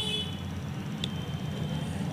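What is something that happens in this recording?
A small metal connector clicks against a metal terminal.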